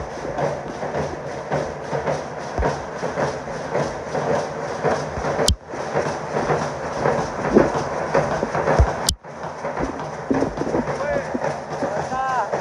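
Marching drums beat a steady rhythm outdoors.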